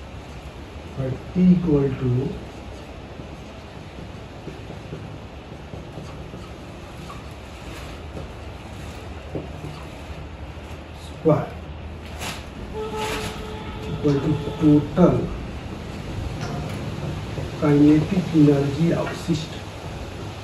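A man speaks calmly in a lecturing tone, with pauses.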